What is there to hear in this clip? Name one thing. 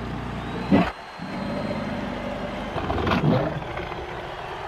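A beast snarls and roars loudly.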